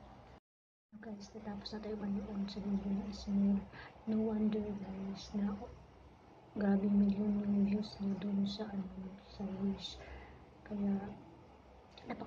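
A young woman talks calmly and close up.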